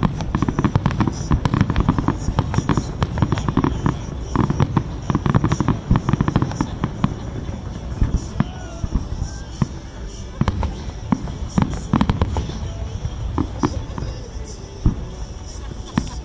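Fireworks bang and crackle rapidly in the distance.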